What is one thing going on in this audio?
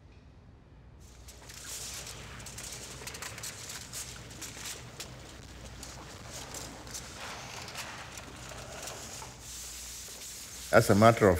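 Plastic sheeting rustles and crinkles close by.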